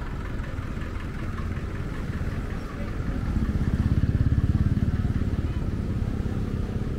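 Motorcycles pass close by with buzzing engines.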